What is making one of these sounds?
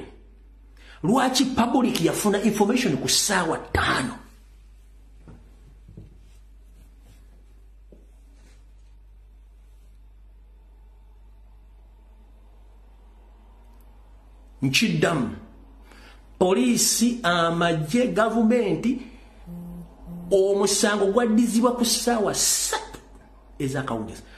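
A man speaks with animation close to a microphone, pausing often.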